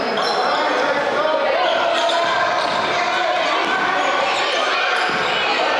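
Sneakers squeak on a wooden court.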